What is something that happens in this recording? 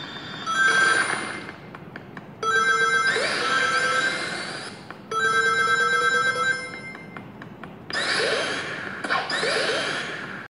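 Game music and sound effects play from a phone's small speaker.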